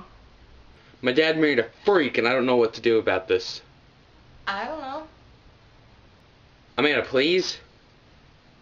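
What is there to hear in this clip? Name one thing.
A young man talks on a phone.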